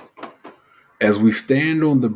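A middle-aged man speaks calmly and clearly.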